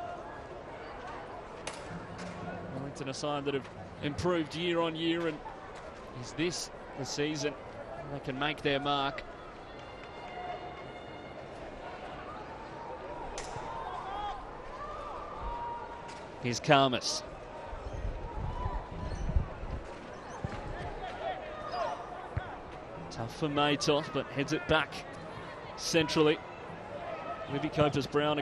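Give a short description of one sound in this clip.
A small crowd murmurs faintly in an open stadium.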